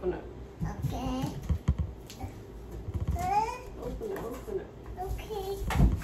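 A little girl speaks in a high voice.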